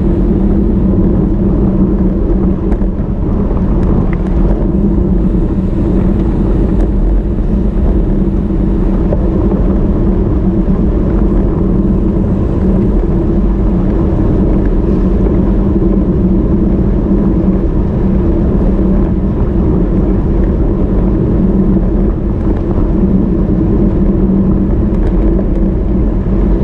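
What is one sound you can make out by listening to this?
Wind buffets a microphone loudly and steadily.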